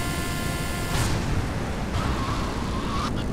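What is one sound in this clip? A motorbike lands with a heavy thud.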